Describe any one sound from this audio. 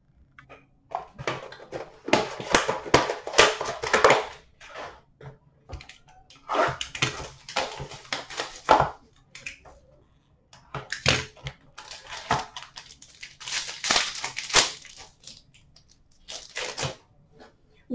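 Foil card packs rustle and crinkle as a hand rummages through them.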